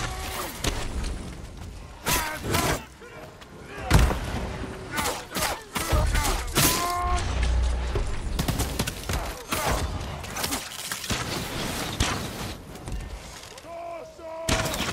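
Swords clash and slash in quick, sharp strikes.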